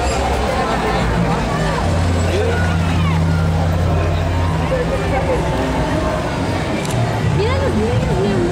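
A crowd chatters and calls out nearby outdoors.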